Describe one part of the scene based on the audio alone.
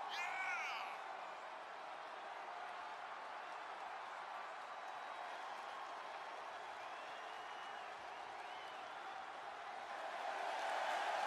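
A large crowd cheers steadily in an echoing arena and swells louder near the end.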